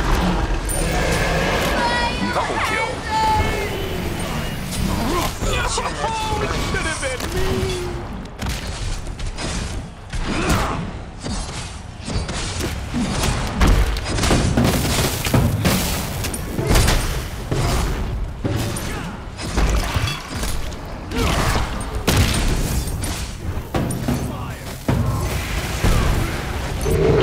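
Magic blasts and weapon strikes crash and whoosh in a busy fight.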